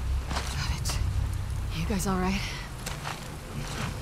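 A young woman speaks briefly and calmly.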